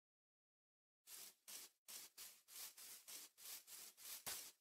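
Footsteps rustle through grass at a quick, steady pace.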